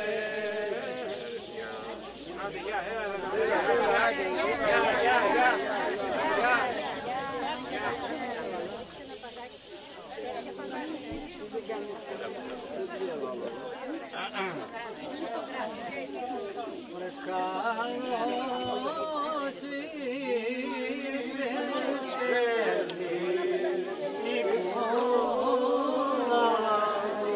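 A group of older men and women sing together.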